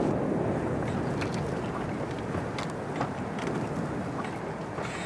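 Wooden planks creak and knock.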